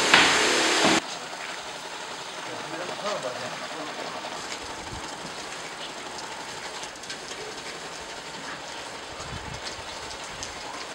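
A hand sprayer hisses softly outdoors.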